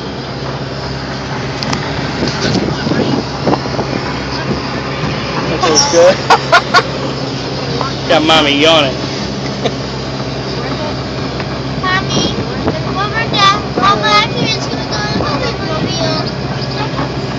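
An aircraft engine drones steadily inside a small cabin.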